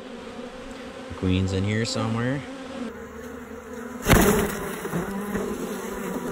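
Honeybees buzz close by.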